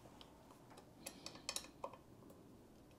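An office chair clicks lightly a few times.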